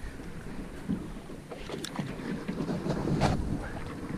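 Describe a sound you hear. A fishing reel whirs and clicks as it is wound in.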